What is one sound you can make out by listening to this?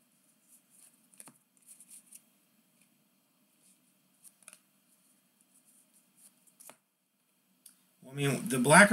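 Trading cards click and rustle softly as they are flipped through by hand.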